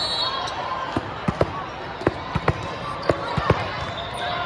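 A volleyball bounces on the floor before a serve.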